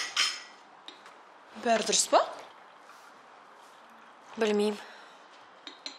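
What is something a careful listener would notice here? Tea pours from a teapot into a porcelain cup.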